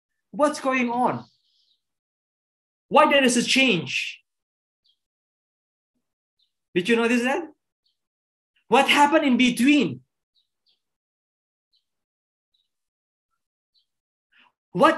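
A young man speaks calmly through an online call, in short phrases with pauses.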